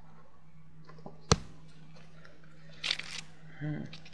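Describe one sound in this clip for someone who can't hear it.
A playing card is laid down on a table with a light tap.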